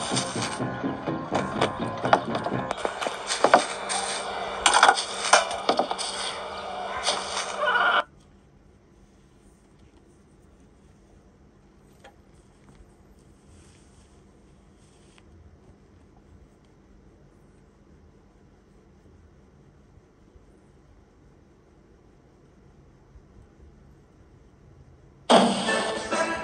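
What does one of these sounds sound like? Game sound effects and music play from a tablet's speaker.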